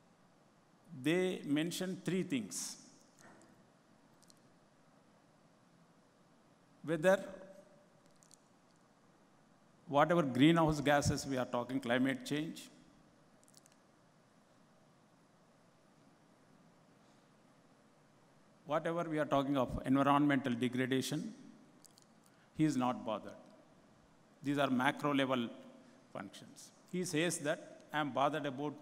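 An elderly man speaks calmly into a microphone, with long pauses between phrases.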